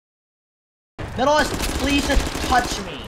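An automatic rifle fires rapid shots.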